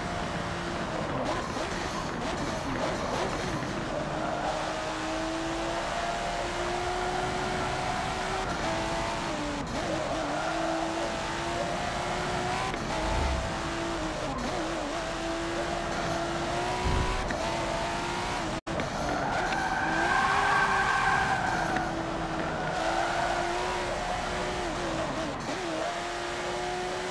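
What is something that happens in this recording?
A sports car engine revs and hums steadily, rising and falling in pitch as the car takes the bends.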